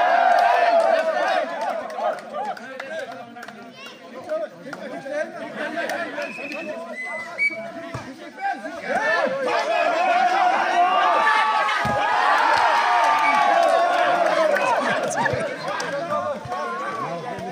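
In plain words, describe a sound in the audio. A large crowd outdoors cheers and shouts excitedly.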